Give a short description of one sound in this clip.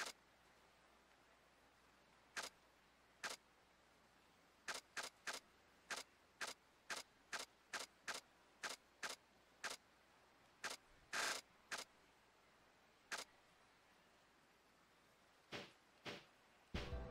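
Short electronic menu blips sound one after another.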